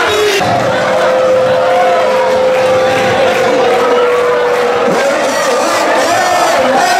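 A large crowd cheers and chants loudly in an open stadium.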